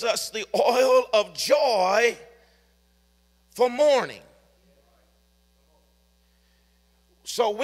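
A middle-aged man speaks into a microphone with pauses, his voice carried over a loudspeaker.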